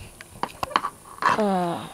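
Hands fumble with small objects, making light knocks and rustles.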